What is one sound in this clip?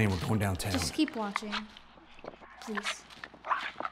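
A young boy speaks briefly and quietly close by.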